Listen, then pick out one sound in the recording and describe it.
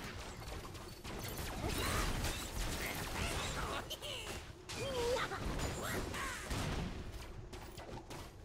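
Game spells and attacks crackle and whoosh.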